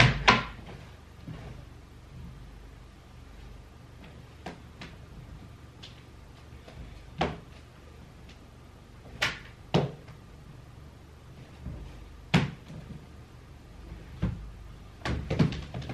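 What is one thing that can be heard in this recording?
Objects knock and clatter against plastic boxes.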